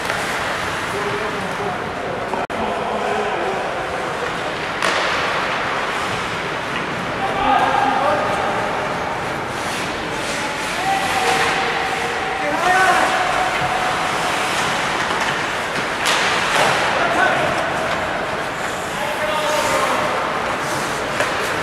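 Players shout to each other across the rink.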